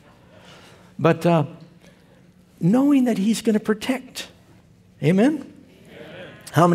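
An elderly man speaks slowly and clearly through a microphone in a large echoing hall.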